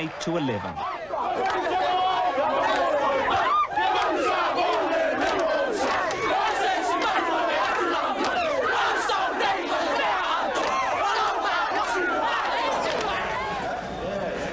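A crowd of young people cheers and shouts loudly.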